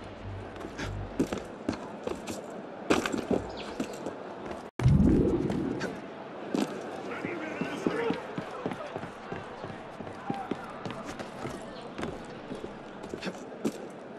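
Hands grab and knock against stone and wood while climbing.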